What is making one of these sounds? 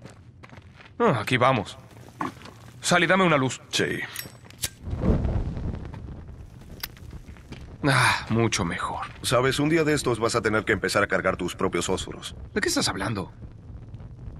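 A man speaks with a low, wry voice.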